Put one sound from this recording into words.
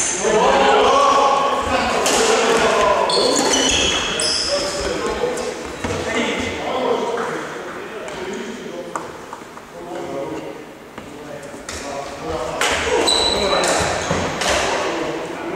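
Badminton rackets hit a shuttlecock, echoing in a large hall.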